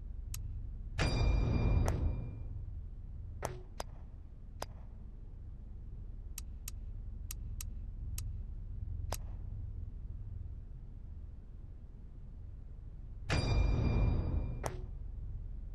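A bright chiming swoosh rings out twice.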